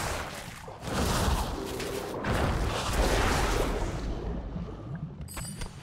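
Game combat effects whoosh and thud loudly.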